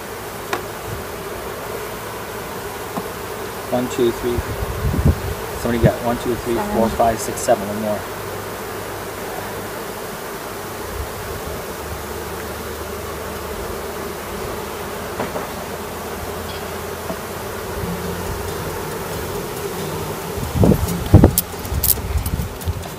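Bees buzz steadily in a low hum.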